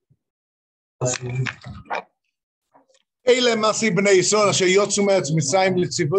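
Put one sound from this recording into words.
A middle-aged man speaks with animation into a microphone over an online call.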